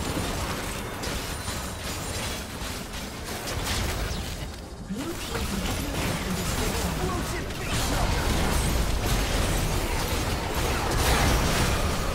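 Magic spells blast and crackle in a busy fantasy battle.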